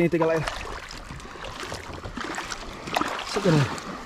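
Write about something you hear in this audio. Water splashes as a fish is released.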